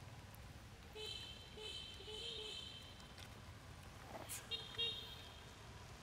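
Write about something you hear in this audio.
A young monkey squeaks in short high calls.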